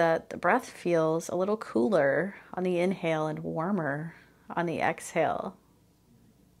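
A woman speaks calmly and clearly into a microphone, close by.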